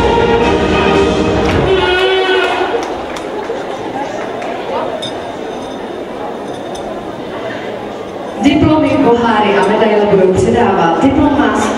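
A crowd murmurs in a large echoing hall.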